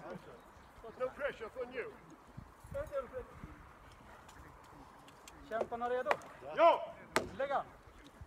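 Men shout outdoors.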